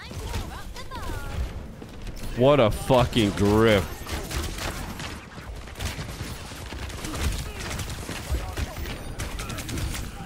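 Video game weapons fire in short, sharp bursts.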